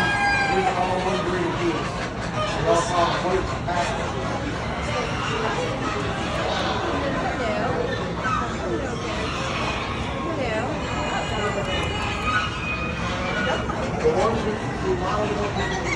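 Chickens cluck and crow nearby.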